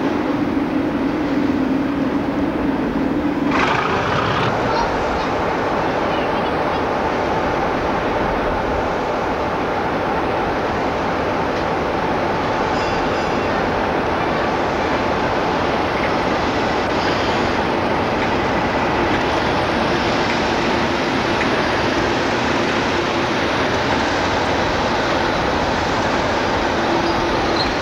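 A diesel locomotive engine rumbles and drones loudly.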